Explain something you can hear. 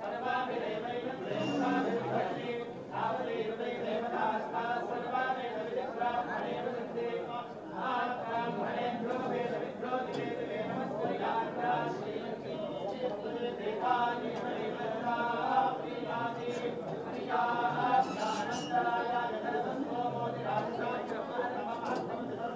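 A man recites a chant in a steady voice.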